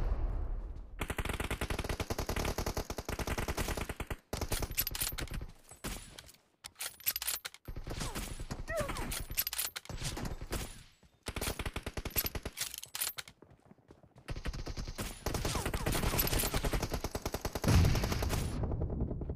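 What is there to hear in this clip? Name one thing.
Rapid automatic gunfire rattles in bursts.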